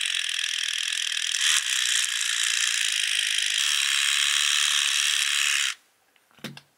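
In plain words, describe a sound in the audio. A small razor scrapes softly and steadily over skin, close up.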